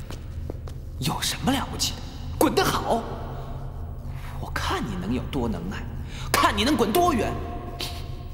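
A young man speaks harshly and angrily, close by.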